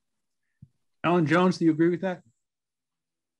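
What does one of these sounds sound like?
An elderly man speaks briefly and calmly over an online call.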